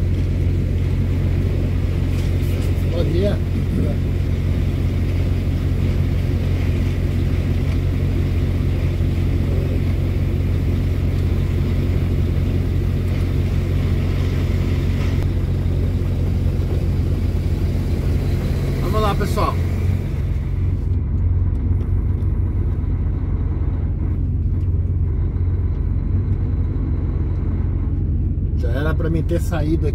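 Traffic rumbles steadily along a wet road in the distance.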